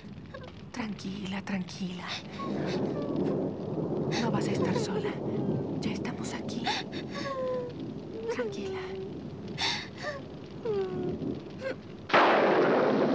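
A woman speaks anxiously and softly close by.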